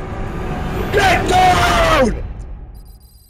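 An elderly man makes a loud, strained drawn-out cry.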